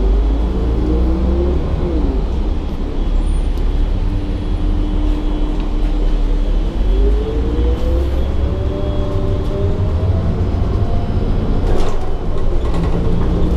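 A bus engine rumbles and whines as the bus drives along.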